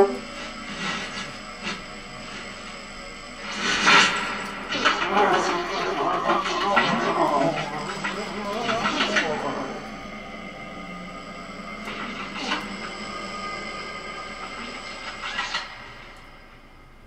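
A saxophone plays loose, shifting notes.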